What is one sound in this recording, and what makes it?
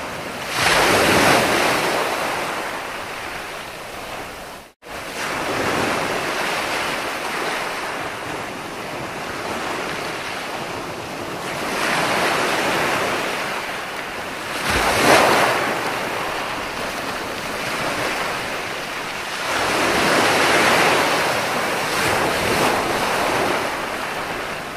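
Foamy surf washes and hisses up the sand.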